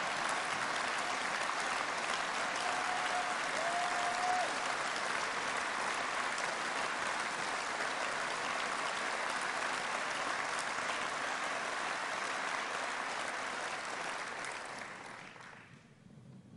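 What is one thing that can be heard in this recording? A large crowd applauds and cheers in a big echoing hall.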